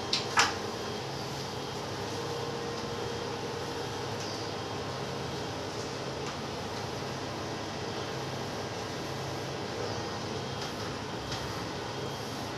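A woman wipes a window with a cloth.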